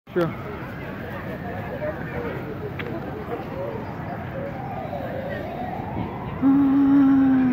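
Men and women chatter at a distance outdoors.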